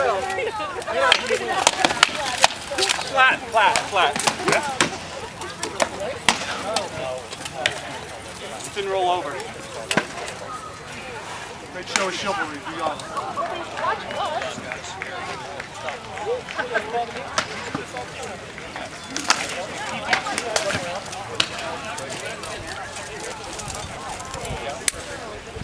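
A crowd of onlookers talks and calls out outdoors.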